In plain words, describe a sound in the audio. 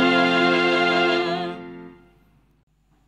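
A group of people sings together, heard through a microphone.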